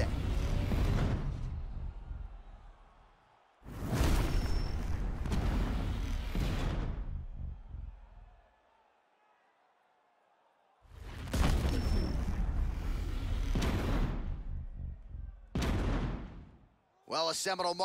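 A crowd cheers and roars loudly.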